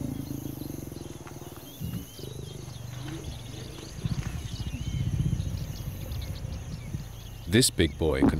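A lion growls with a low, pulsing rumble.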